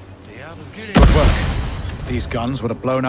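A grenade explodes with a loud, deep boom that rumbles away.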